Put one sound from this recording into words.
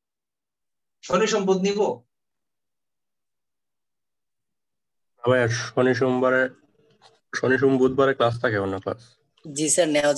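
A man speaks calmly and close to the microphone, in short bursts with pauses.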